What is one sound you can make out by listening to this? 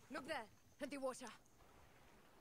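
A young woman speaks urgently.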